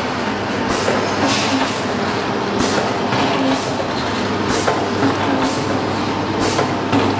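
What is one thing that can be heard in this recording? A packaging machine runs with a steady, loud mechanical clatter.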